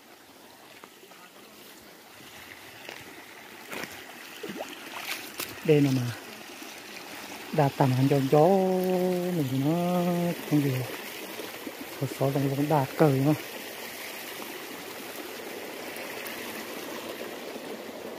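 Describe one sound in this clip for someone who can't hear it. Footsteps brush through grass on a dirt path.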